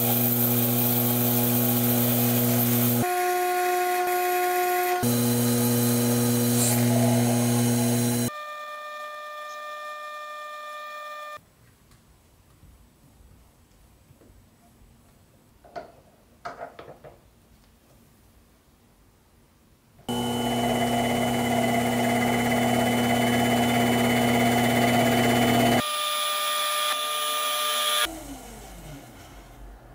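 A small metal lathe whirs as a cutting tool turns brass.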